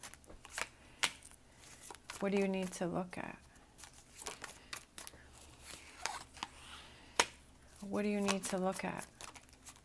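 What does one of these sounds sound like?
A hand lays cards down softly on a table.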